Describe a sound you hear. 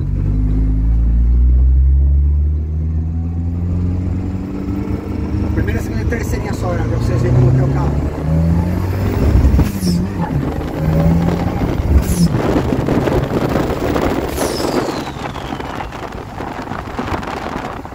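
A car engine revs up and down through the gears.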